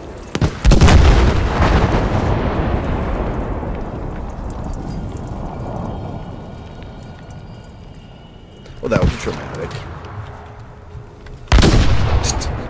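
A huge explosion booms close by and rumbles away.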